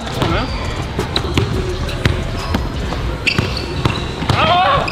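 A basketball bounces on a hard court in quick dribbles.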